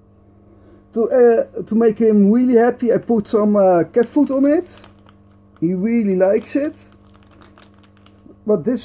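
A foil food pouch crinkles in someone's hands.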